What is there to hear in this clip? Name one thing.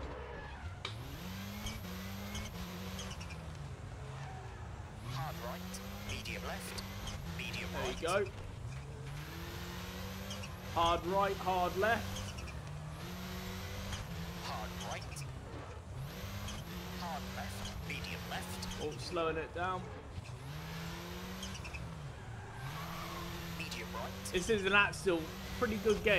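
A rally car engine revs hard, rising in pitch and dropping with each gear change.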